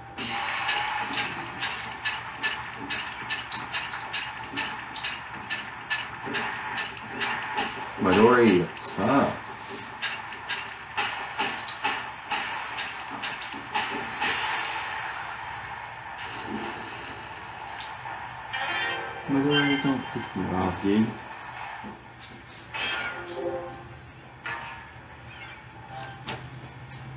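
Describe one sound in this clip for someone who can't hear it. Game sound effects clang and thud through a television speaker.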